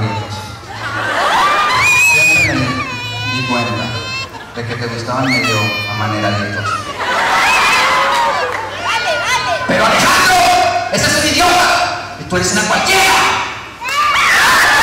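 A young woman speaks through a handheld microphone in a large hall.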